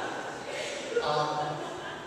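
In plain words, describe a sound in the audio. A man speaks through a loudspeaker in a large hall.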